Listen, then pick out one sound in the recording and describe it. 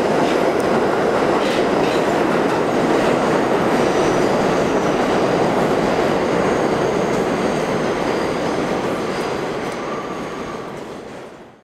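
A subway train rumbles and rattles loudly as it pulls away into a tunnel, slowly fading.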